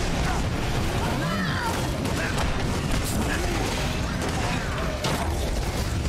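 Jet thrusters roar steadily.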